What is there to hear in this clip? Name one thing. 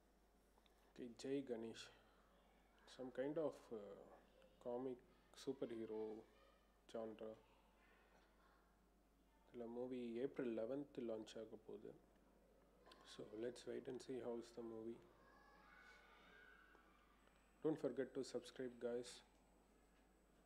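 A young man talks calmly into a close microphone, with pauses.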